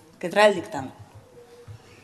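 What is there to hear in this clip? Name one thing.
A woman speaks briefly and calmly into a microphone.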